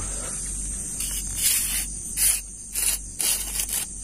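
A small firework fizzes and hisses.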